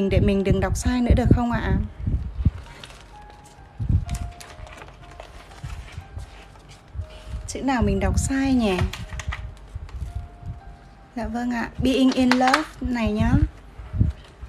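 Paper pages rustle and flap as they are turned.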